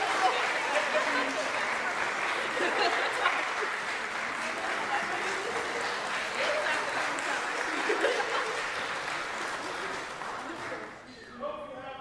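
An audience applauds and cheers in a large echoing hall.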